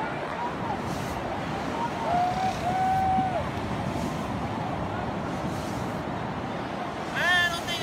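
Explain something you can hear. Shallow waves wash gently over a man lying in the surf.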